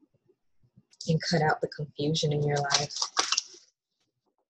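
A young woman speaks casually and close by.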